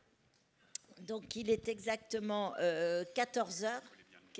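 A woman answers loudly through a microphone.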